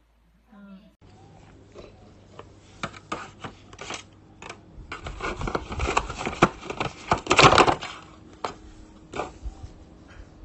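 Cardboard boxes scrape and knock as they are handled.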